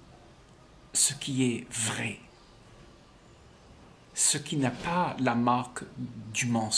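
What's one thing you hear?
An elderly man speaks calmly and warmly, close by.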